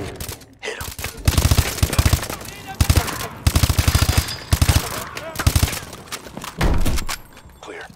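Rapid gunfire rings out in loud bursts, close by.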